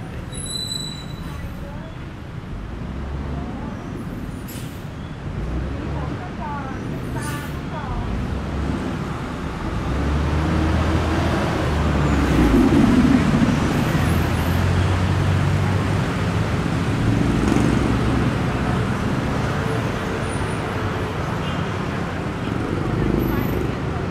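City traffic rumbles steadily along a busy street.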